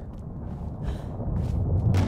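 A spinning blade whooshes through the air.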